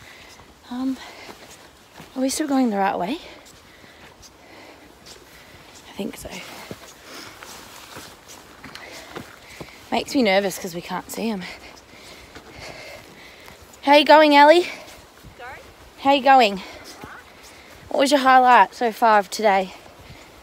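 A young woman sings a slow melody in short phrases, close to the microphone.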